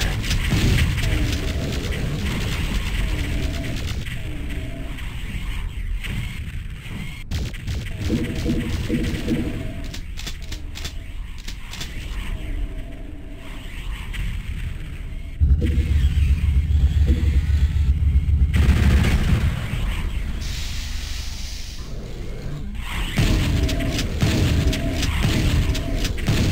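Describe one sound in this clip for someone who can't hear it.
A pistol fires shot after shot.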